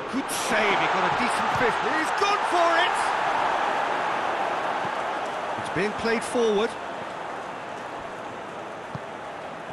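A large stadium crowd roars and chants.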